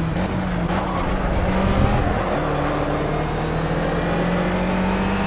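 A race car engine drones loudly, dropping in pitch as it shifts gear.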